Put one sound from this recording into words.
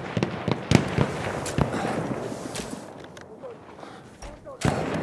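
Gunshots crack and boom nearby, echoing off rock.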